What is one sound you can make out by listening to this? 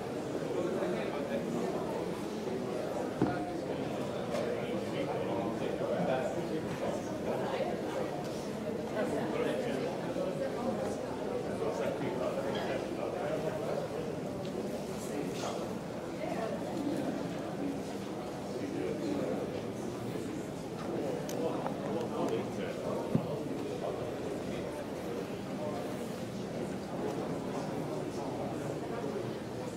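A crowd of visitors murmurs and chatters indoors, echoing softly in a large hall.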